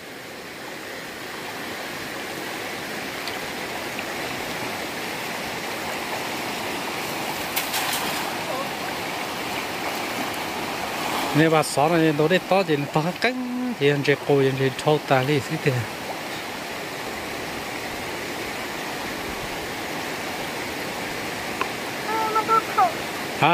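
A shallow stream flows and babbles over stones.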